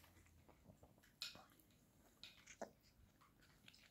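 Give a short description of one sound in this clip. A toddler slurps and smacks on a tomato close by.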